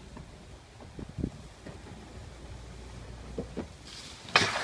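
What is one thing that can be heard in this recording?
Skateboard wheels clack over cracks in the pavement.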